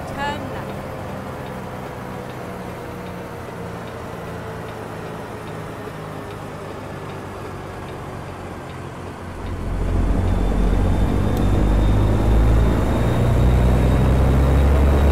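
A diesel truck engine drones as the truck drives along.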